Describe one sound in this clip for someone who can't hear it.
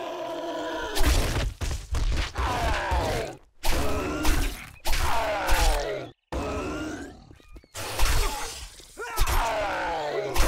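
A knife stabs into flesh with wet thuds.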